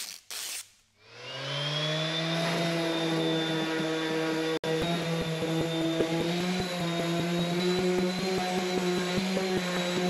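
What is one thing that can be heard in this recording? An electric sander whirs loudly and steadily.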